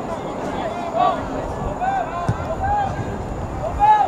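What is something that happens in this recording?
A soccer ball is kicked with a dull thud.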